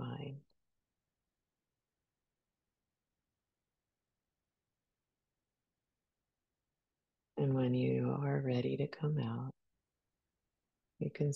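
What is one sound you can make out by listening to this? A woman speaks calmly and close to a microphone, with long pauses.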